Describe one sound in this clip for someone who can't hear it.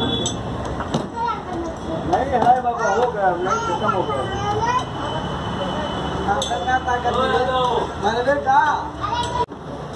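A metal spatula scrapes a hot griddle.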